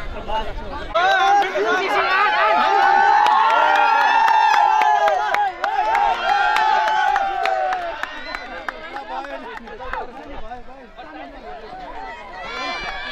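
A crowd of young people cheers and shouts loudly outdoors.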